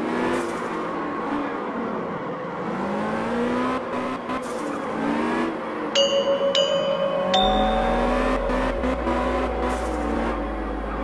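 Tyres screech as a car slides around a turn.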